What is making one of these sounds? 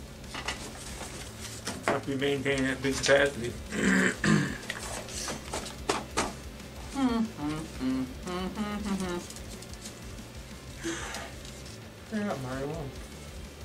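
Paper wrappers rustle and crinkle.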